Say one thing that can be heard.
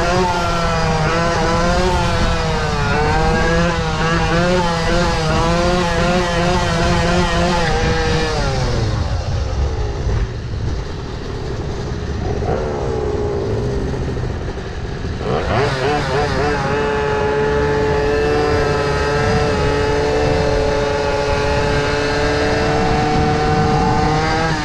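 An electric motor whines, rising and falling in pitch.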